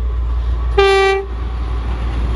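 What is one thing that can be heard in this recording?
A train horn sounds a short blast.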